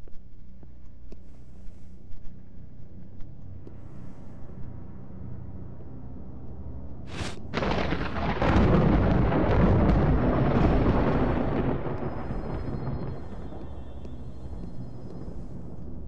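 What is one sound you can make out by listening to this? Soft footsteps pad across a hard tiled floor.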